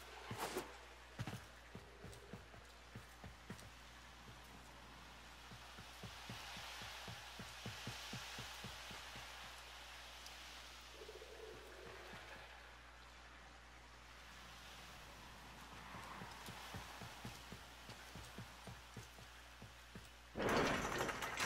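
Light footsteps tap steadily on a hard floor.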